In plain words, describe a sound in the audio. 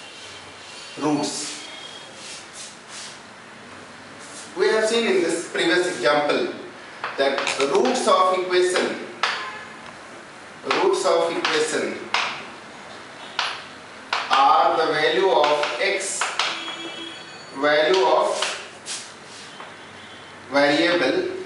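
A man speaks calmly and clearly, as if explaining, close to a microphone.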